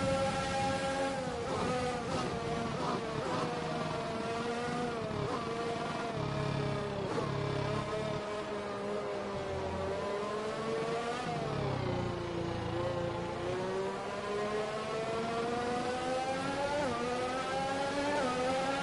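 A racing car engine screams, its pitch rising and falling as it shifts gears.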